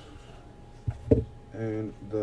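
A small cardboard box is set down on a table with a thud.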